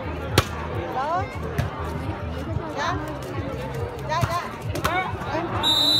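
A ball is struck with sharp thuds.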